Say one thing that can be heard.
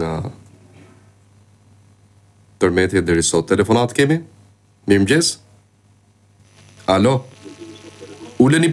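A man speaks in short bursts into a close microphone, with pauses between.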